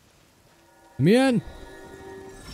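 A bright magical chime rings out and sweeps upward.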